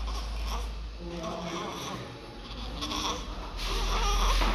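A newborn baby grunts and murmurs softly close by.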